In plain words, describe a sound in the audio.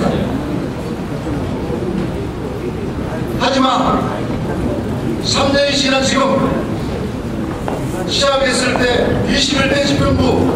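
A middle-aged man speaks forcefully into a microphone over a loudspeaker, with bursts of loud speech.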